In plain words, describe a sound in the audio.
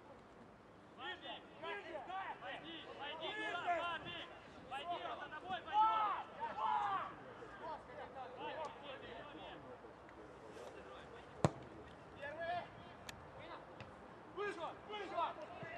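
Men shout to each other outdoors across an open pitch.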